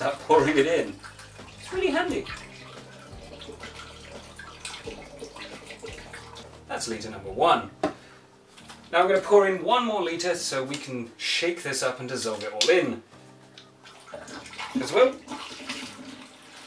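Liquid pours through a funnel into a glass jug.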